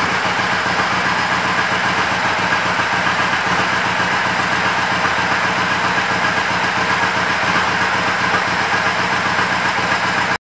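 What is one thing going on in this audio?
A motorcycle engine idles steadily close by.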